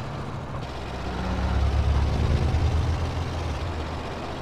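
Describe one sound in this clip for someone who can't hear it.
A truck passes close by.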